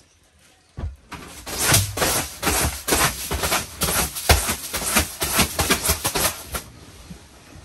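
A brush sweeps briskly across a mattress.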